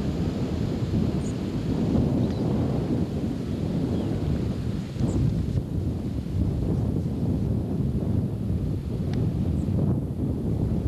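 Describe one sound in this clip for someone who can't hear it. A river rushes and churns steadily.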